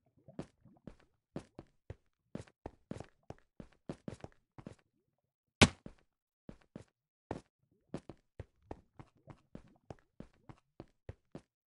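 Footsteps tap on stone in a video game.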